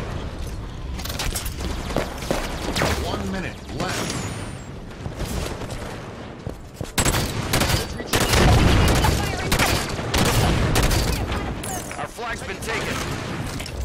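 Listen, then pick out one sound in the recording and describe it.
Gunshots crack repeatedly in quick bursts.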